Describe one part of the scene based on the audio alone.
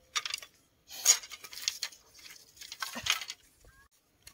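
Dry bamboo strips rustle and clatter as a woman handles them.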